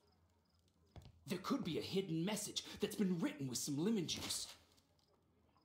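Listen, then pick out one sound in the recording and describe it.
A man's voice speaks calmly from a game.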